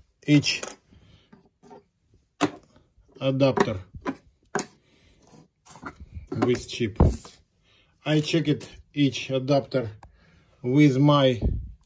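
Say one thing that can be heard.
Plastic lens caps tap and clack as they are set down on a table.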